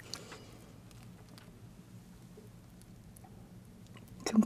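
Crispy fried food crackles softly as fingers handle it.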